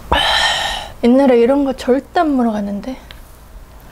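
A young woman speaks playfully up close.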